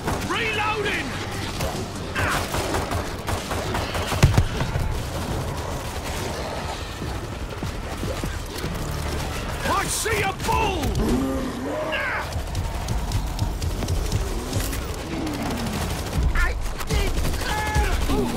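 Zombies snarl and shriek.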